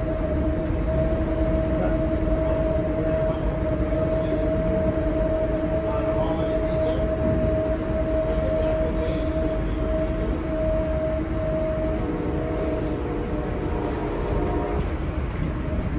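A steady droning hum comes from the train's motors.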